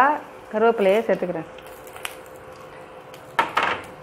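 Vegetables drop into a metal pan with a clatter.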